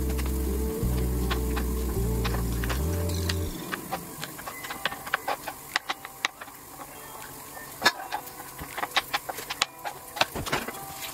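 A knife taps and clicks against a cutting board, chopping boiled eggs.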